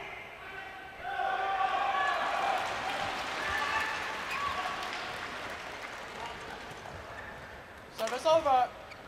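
A crowd cheers and applauds in a large echoing hall.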